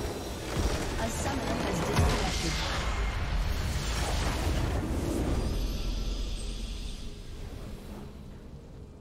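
A large structure blows apart with a deep, rumbling blast that slowly fades.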